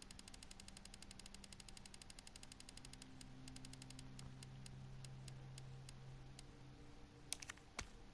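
Soft electronic menu ticks repeat rapidly, then more slowly.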